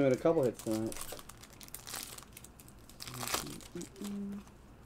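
A foil wrapper crinkles and tears as hands open a pack.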